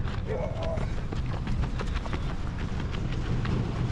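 Footsteps run on dirt.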